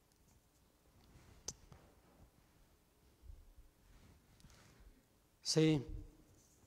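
An elderly man speaks slowly and calmly into a microphone in an echoing hall.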